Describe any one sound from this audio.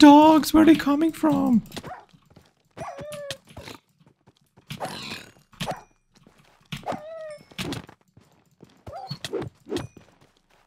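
Game creatures grunt and snort while attacking.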